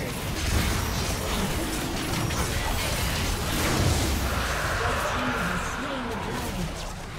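Magic spells crackle and burst in a busy battle.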